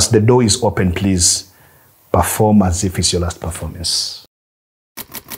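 A man speaks calmly and clearly into a microphone close by.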